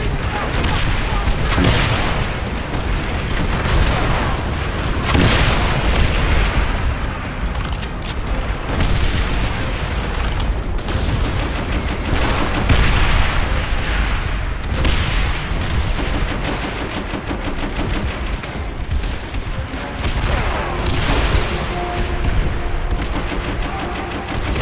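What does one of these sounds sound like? A low, dense rumble of battle goes on throughout.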